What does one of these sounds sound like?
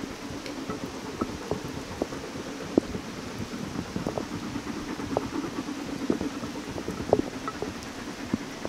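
Raindrops patter and drip on an umbrella close by.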